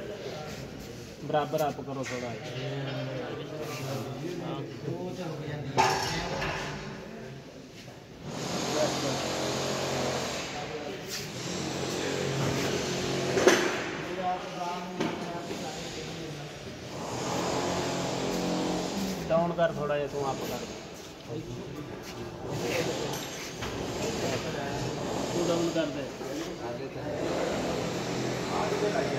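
Men talk nearby in a calm manner.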